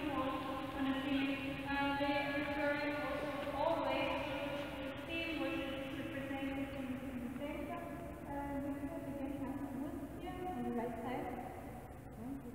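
A woman speaks with animation, her voice echoing in a large hall.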